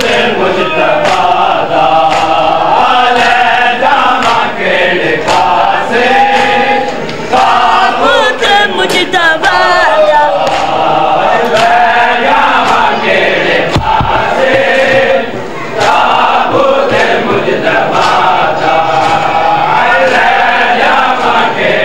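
A crowd of men chants a mournful lament loudly in unison.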